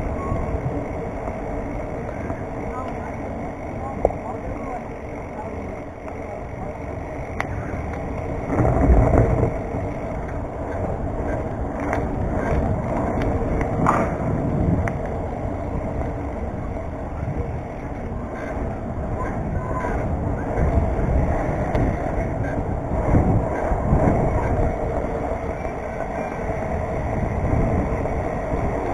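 Small wheels roll and rumble steadily over a paved path.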